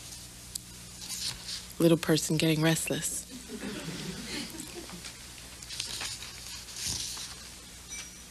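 A woman reads aloud into a microphone, with pauses.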